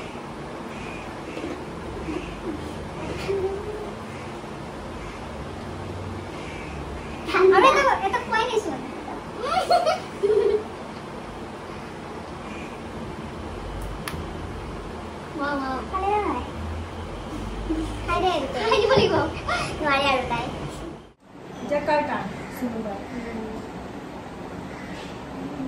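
Young women talk and laugh together close by.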